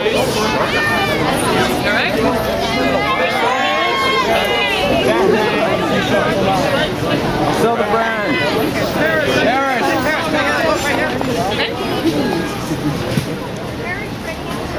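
A crowd of excited women shouts and chatters close by.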